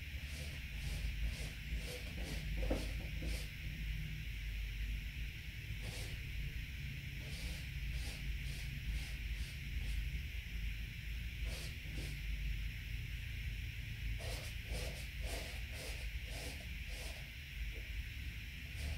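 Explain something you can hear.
A paintbrush brushes and taps softly against a canvas.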